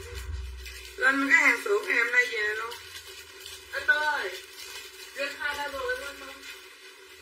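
A middle-aged woman talks animatedly close by.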